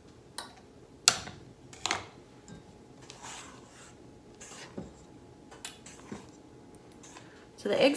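A spatula scrapes and clinks against a metal mixing bowl.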